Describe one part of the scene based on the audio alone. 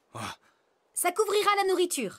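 A young boy speaks politely.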